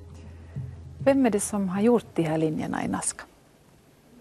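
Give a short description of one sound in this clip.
A woman speaks clearly into a microphone.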